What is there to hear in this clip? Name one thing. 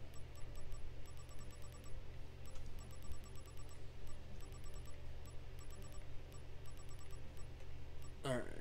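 Soft menu cursor clicks tick quickly, one after another.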